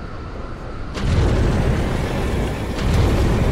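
A heavy metallic blow crashes loudly.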